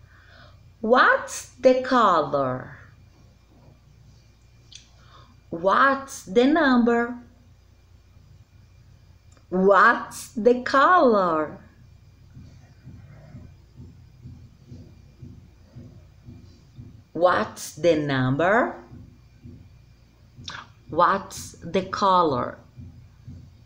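A woman speaks close by in an animated, sing-song voice, in short bursts with pauses.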